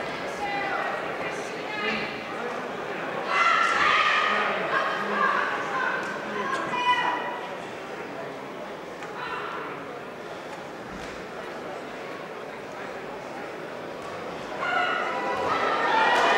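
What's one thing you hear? A crowd shouts and cheers around a boxing ring.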